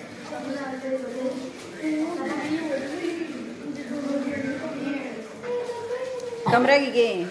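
Several children sing together nearby.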